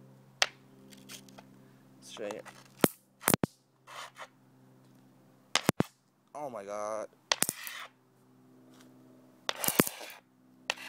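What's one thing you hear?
A stone knocks on a concrete surface.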